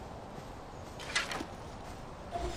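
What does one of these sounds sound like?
A bow is lowered and put away with a quick rustle.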